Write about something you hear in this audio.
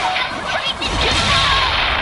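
A loud magical blast crackles and booms.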